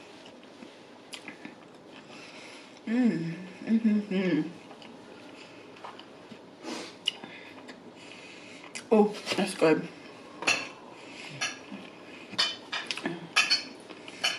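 A young woman chews food with wet, sticky mouth sounds close to a microphone.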